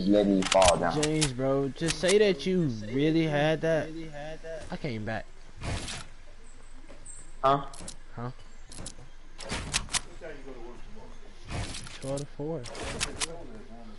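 Wooden panels snap into place with quick clacking knocks.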